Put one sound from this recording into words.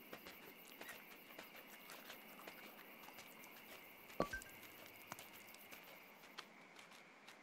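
Small paws patter and crunch quickly through snow.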